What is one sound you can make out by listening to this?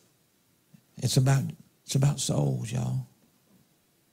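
A man speaks briefly and loudly into a nearby microphone.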